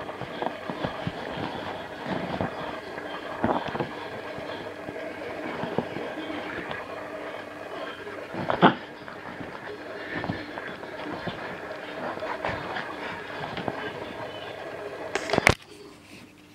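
A puppy growls playfully.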